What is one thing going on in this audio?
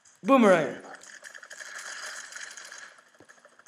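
Gunshots rattle rapidly.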